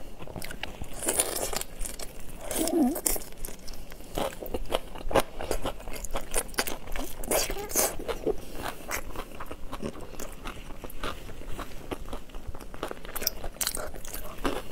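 A young woman slurps and chews loudly close to a microphone.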